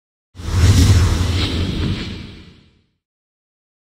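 A loud rushing whoosh swells and fades away.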